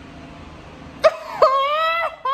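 A young woman squeals in surprise.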